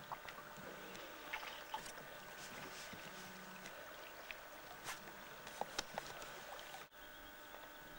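A stream of water gurgles and splashes close by.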